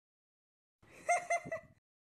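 A man laughs briefly.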